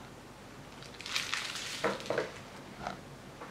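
A metal spoon scrapes food off a metal dish.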